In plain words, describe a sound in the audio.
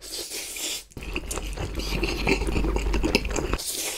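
A young man slurps noodles.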